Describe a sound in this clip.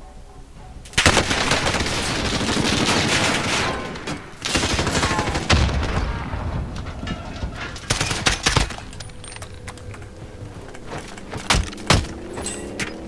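Gunshots crack loudly and echo.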